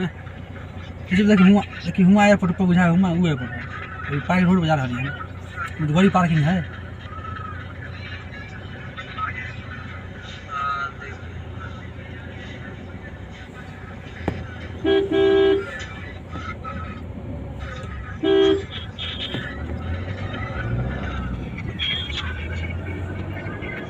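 A car drives along a paved road, heard from inside.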